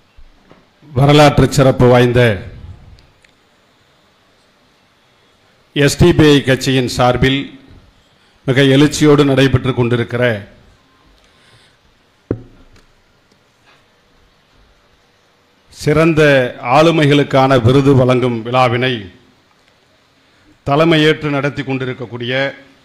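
A man speaks loudly into a microphone over a loudspeaker, in bursts with pauses.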